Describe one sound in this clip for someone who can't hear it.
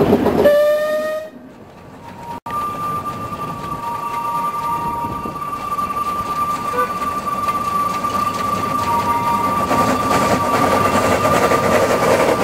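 Train wheels clatter on rails.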